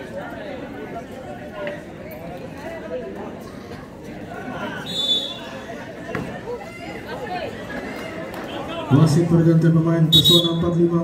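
A large crowd of spectators chatters and cheers.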